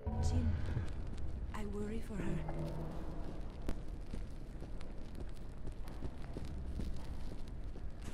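A burning torch crackles and hisses close by.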